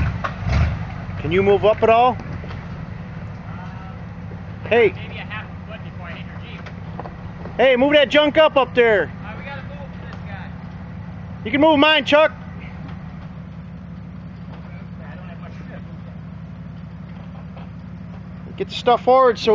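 Large tyres grind and crunch over loose rocks.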